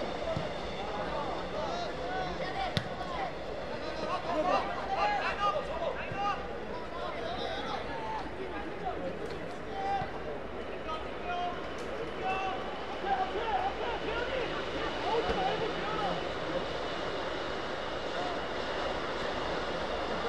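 Young players shout to each other across an outdoor pitch.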